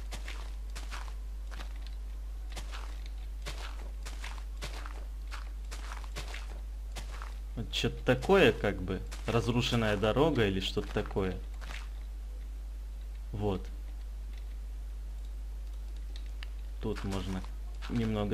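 Blocks break with short, soft, crunchy knocks, one after another.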